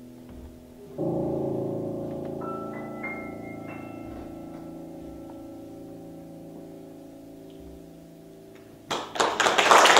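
A piano chord rings out and slowly fades in an echoing hall.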